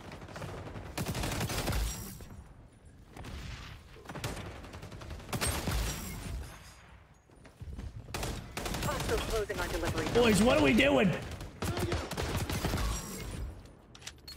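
Gunfire from a video game rattles in rapid bursts.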